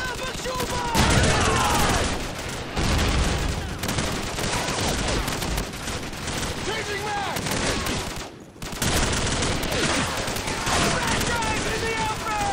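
Rifles fire in rapid bursts close by.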